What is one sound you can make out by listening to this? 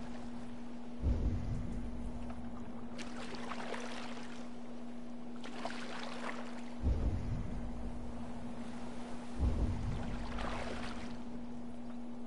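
Oars splash and dip rhythmically into water.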